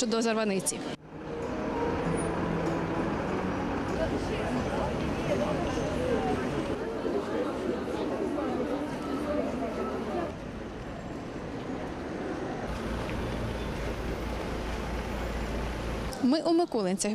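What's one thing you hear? A crowd murmurs and shuffles outdoors.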